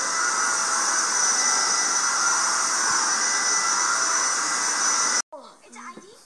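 A vacuum cleaner roars steadily across carpet.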